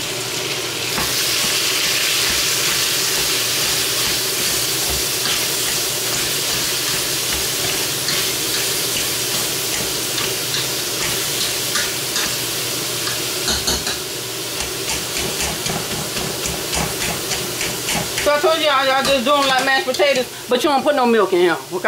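A potato masher squishes soft potatoes and scrapes against a metal pot.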